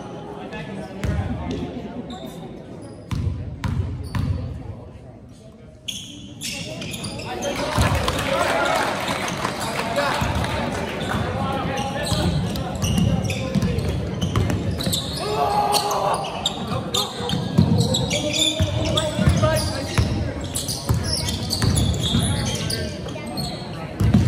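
A basketball bounces on a wooden court in a large echoing gym.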